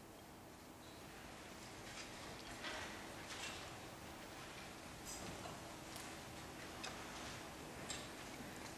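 An audience shifts and murmurs quietly.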